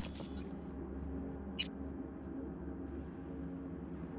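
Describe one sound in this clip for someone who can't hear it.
Short electronic menu beeps chirp several times.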